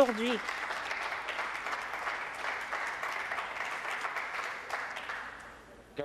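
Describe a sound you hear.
Several people applaud and thump on desks, and the sound fades away.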